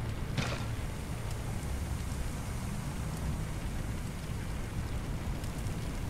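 A fire hose sprays water with a steady hiss.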